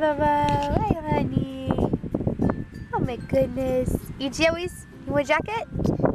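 A young child babbles and coos.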